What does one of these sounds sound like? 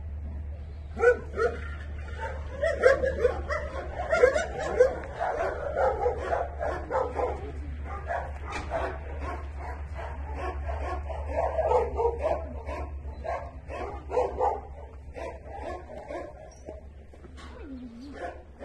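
A young woman talks softly and warmly to a dog close by.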